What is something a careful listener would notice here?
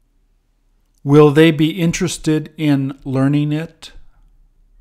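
A man sings out loudly.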